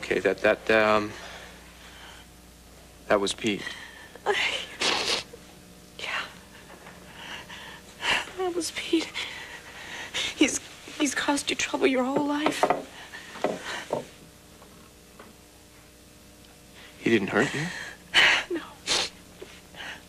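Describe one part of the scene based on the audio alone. A young woman speaks softly and pleadingly.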